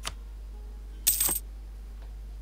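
A short electronic chime sounds as a game menu closes.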